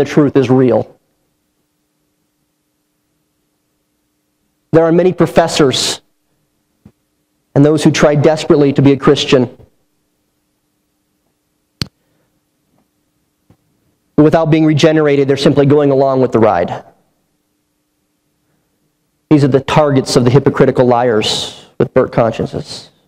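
A man speaks through a microphone in measured phrases with long pauses.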